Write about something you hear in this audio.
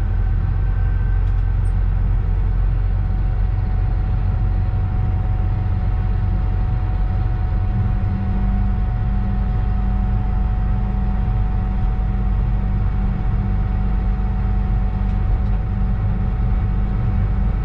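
A train's motor hums with a steady whine.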